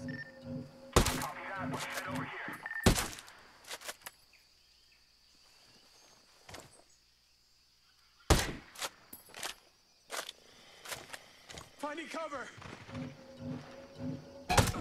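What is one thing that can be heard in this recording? A suppressed rifle fires sharp single shots.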